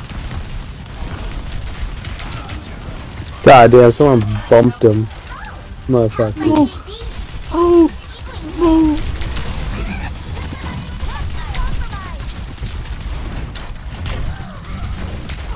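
Rapid gunfire and blasts rattle in a video game.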